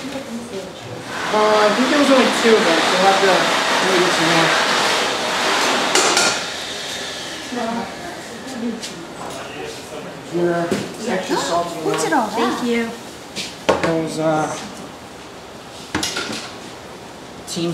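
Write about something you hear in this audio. A young man and a young woman talk nearby.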